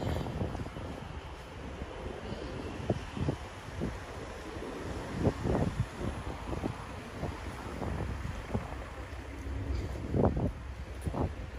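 City traffic hums steadily in the background.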